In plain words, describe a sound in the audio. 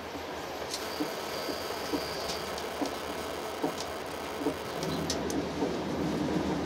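Wheels clack over rail joints.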